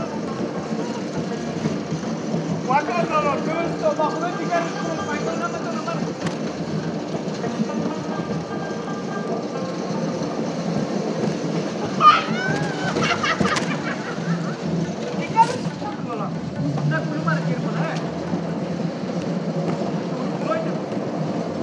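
Bumper cars hum and rumble across a floor.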